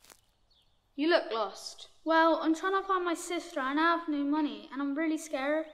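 A young boy speaks quietly, close by.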